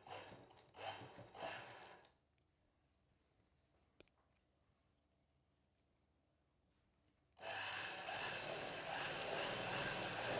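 A sewing machine whirs as it stitches fabric.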